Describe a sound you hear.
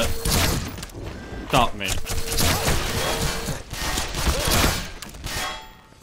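A crossbow fires a bolt.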